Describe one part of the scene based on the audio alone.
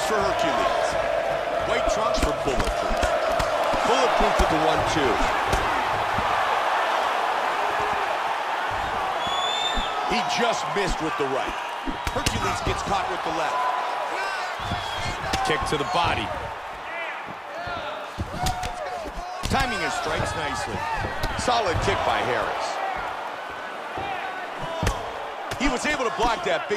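A crowd cheers and murmurs steadily in the background.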